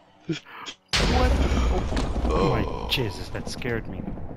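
Thunder cracks and rumbles loudly.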